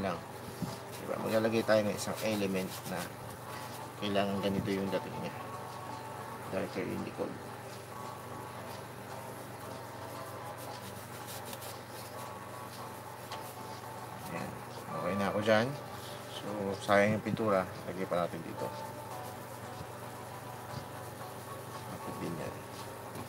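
A paintbrush brushes softly on canvas.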